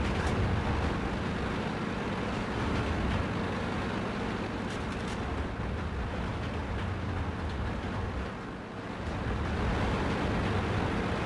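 Tank tracks clank and rattle while the tank moves.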